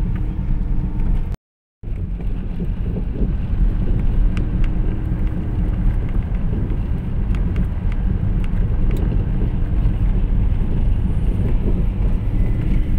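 A car's road noise rumbles low from inside the moving cabin.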